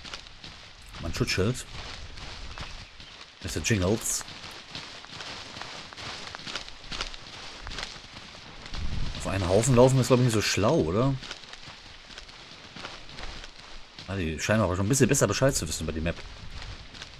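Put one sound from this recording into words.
A middle-aged man talks into a close microphone in bursts.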